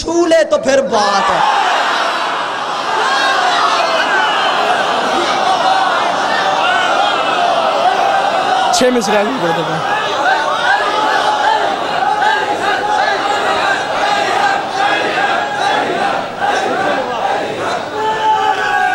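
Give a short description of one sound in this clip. A large crowd of men chants together in unison.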